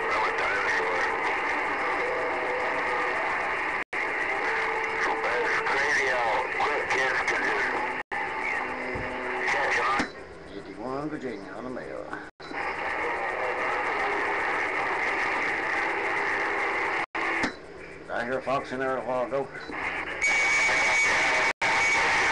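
A radio receiver hisses and crackles with static through its loudspeaker.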